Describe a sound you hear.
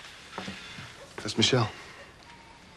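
A young man speaks firmly, close by.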